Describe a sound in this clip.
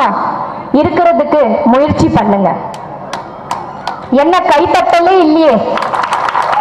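A woman speaks with animation into a microphone through loudspeakers.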